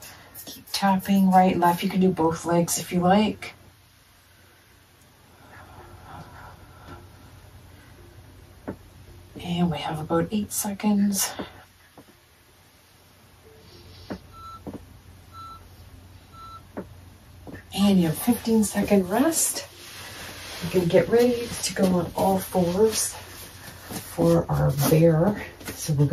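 A young woman talks calmly and clearly, close to a microphone, in short bursts.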